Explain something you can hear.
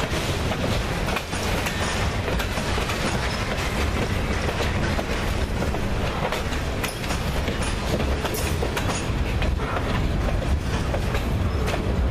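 Steel wheels clack and squeal on the rails.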